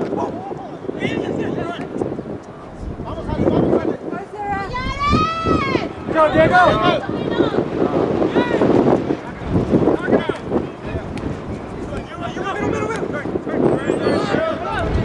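Young women shout and call to each other across an open field, heard from a distance.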